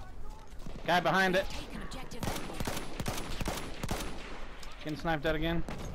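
A machine gun fires in rapid bursts.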